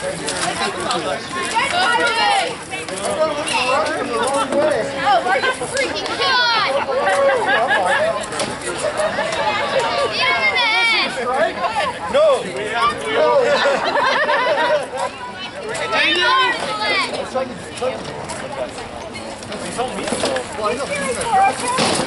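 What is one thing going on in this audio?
Wooden weapons knock and clatter against shields.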